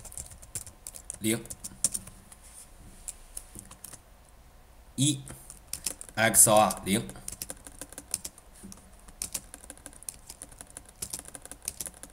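Keys on a keyboard click as someone types quickly.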